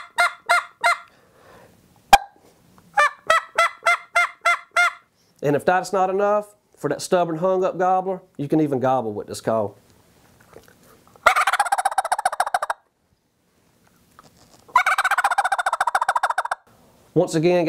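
A man blows sharp, repeated notes on a hand-held game call, close by.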